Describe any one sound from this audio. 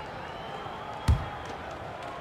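A basketball bounces once on a hard floor.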